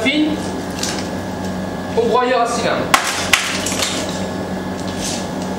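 Roasted beans rattle and clatter as they are scooped and dropped.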